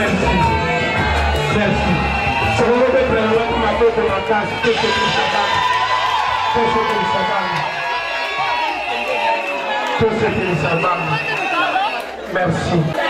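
A crowd of men and women chatter and call out nearby.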